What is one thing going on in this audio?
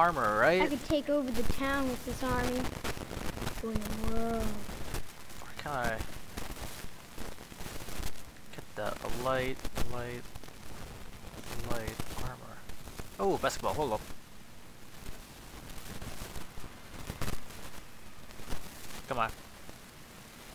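A man talks with animation through a headset microphone, close up.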